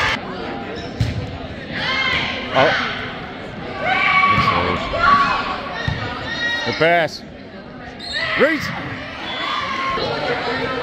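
Young women shout and call out to each other in a large echoing gym.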